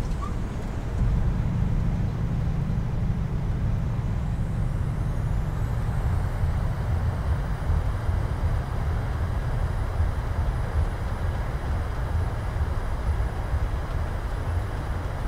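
Tyres rumble on a runway after a touchdown.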